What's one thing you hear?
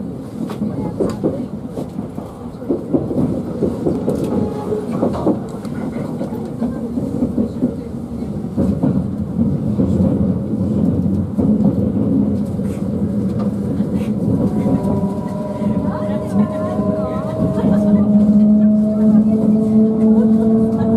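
A train rumbles and rattles along the tracks, heard from inside a carriage.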